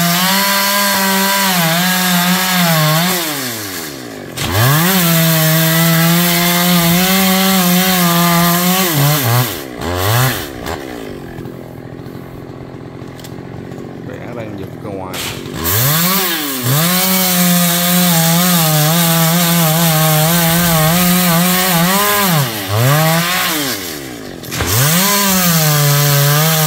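A chainsaw engine roars and revs as it cuts through wood, dropping off briefly between cuts.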